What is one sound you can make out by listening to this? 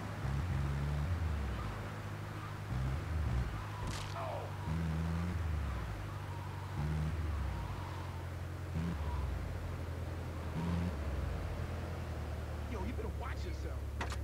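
A video game van engine drones as it drives.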